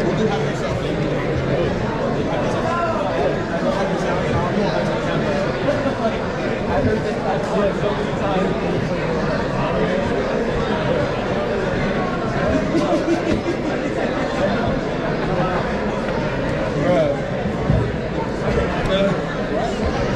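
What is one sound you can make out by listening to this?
A drum kit is played with loud, busy beats close by.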